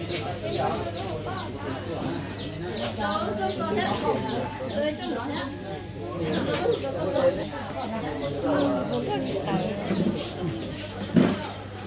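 An electronic keyboard plays a melody through loudspeakers.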